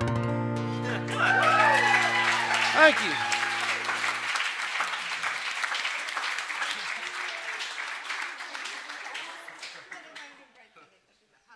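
An audience applauds in a room, and the clapping slowly fades.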